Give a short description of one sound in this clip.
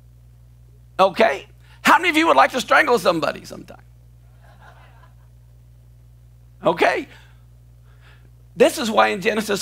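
An elderly man speaks with animation into a microphone, in bursts.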